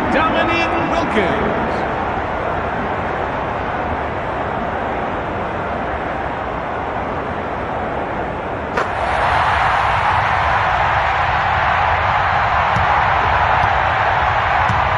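A large crowd murmurs steadily in an echoing arena, then swells into louder cheering.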